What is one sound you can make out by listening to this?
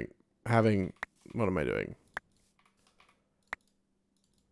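A wooden block is placed with a short knock.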